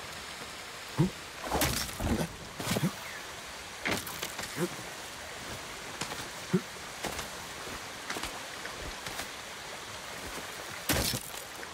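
A climber's hands and feet knock and scrape against rock.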